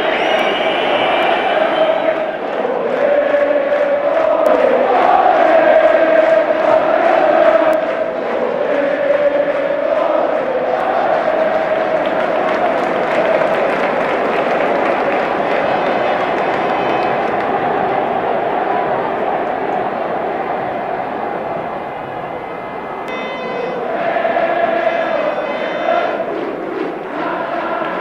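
A large crowd chants and sings in unison.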